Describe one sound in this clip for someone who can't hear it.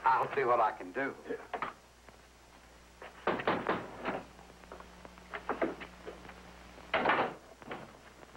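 A man speaks in short bursts.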